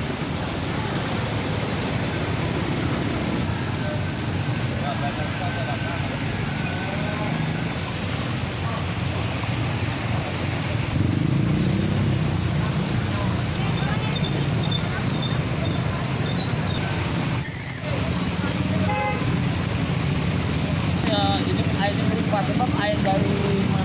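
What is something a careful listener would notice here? Tyres splash through water on a flooded road.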